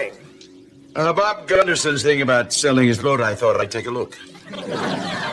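An elderly man speaks with animation.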